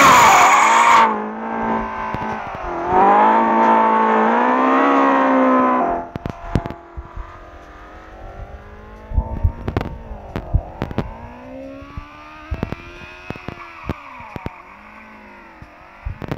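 A car engine revs loudly and changes pitch as the car drifts.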